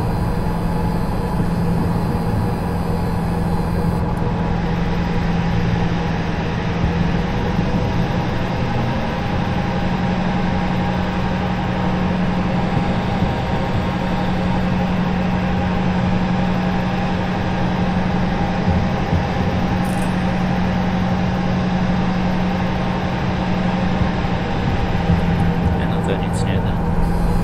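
A diesel locomotive engine drones, heard from inside the cab.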